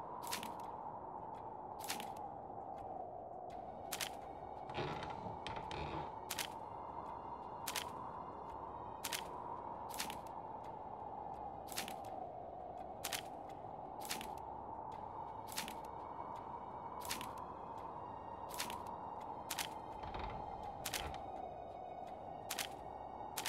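Paper puzzle pieces click into place one after another.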